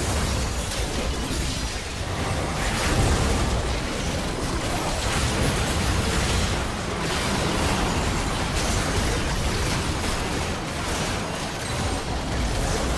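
Magic blasts and explosions crackle and boom.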